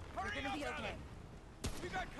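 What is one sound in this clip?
Thunder cracks overhead.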